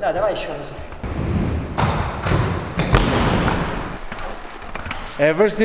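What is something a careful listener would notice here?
Skate wheels roll and scrape across a wooden ramp.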